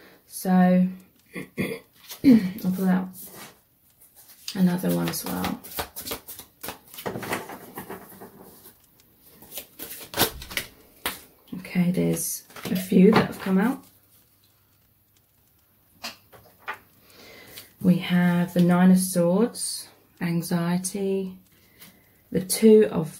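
Playing cards are shuffled and laid down on a table with soft taps.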